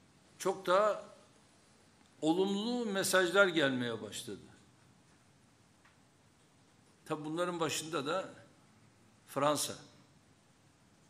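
A middle-aged man speaks calmly into a microphone in short phrases.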